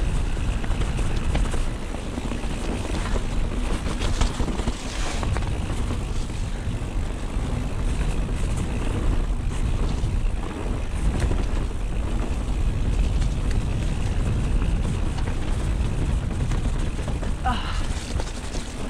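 A bicycle frame and chain rattle over bumps.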